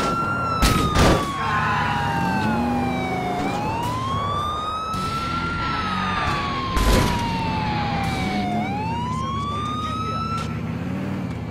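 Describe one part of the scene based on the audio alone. A siren wails, rising and falling in pitch.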